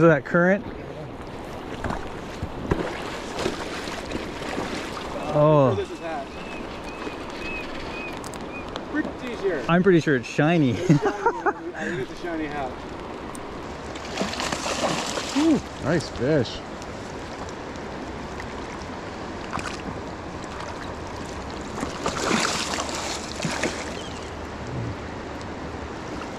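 A river flows steadily over stones.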